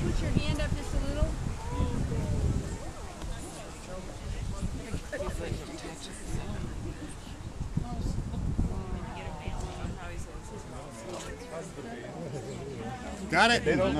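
An elderly man speaks calmly to a gathered crowd outdoors.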